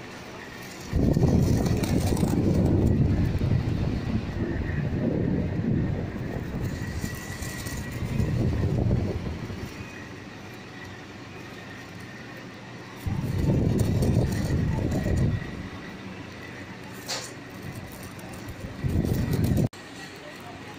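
Air from a fan buffets the microphone in loud rumbling gusts.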